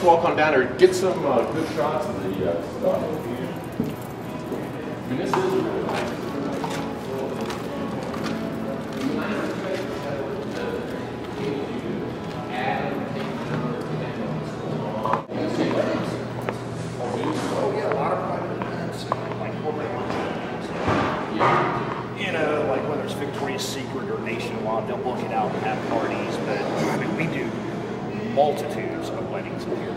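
Another middle-aged man talks casually, close by.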